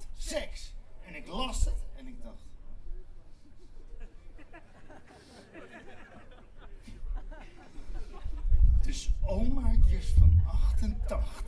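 A man speaks loudly and with animation through loudspeakers outdoors.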